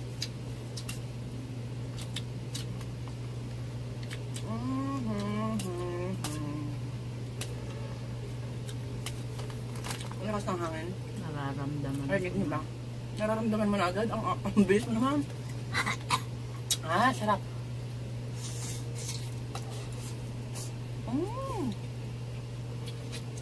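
Two young women slurp noodles.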